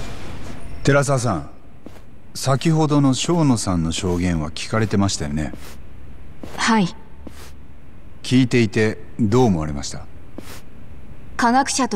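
A man asks questions in a firm, measured voice.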